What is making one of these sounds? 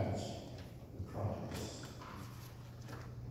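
A man speaks quietly in a large echoing hall.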